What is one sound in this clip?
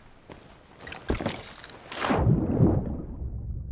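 Water splashes loudly as a swimmer plunges into the sea.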